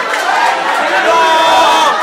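A young man shouts with excitement close by.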